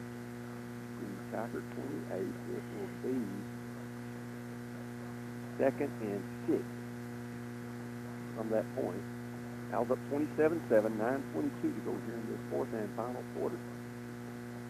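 A man talks nearby in short bursts.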